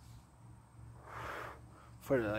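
A man breathes out a puff of vapour.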